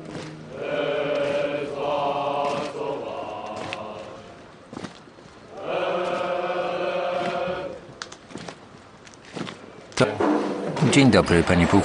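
Boots stamp in step as a column of soldiers marches.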